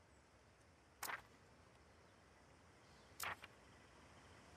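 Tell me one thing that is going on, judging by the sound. A short soft whoosh-click sounds twice as a menu selection changes.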